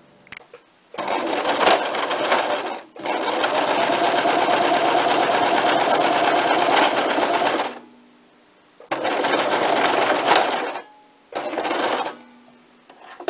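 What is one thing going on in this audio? A sewing machine runs in bursts, stitching fast.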